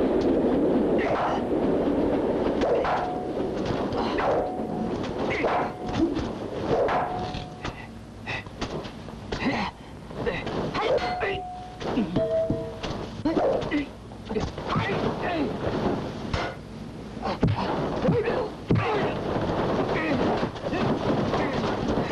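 Blows and thuds of a scuffle strike again and again.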